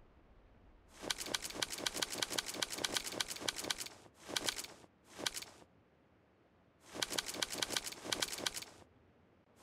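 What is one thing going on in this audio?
Footsteps run quickly across stone.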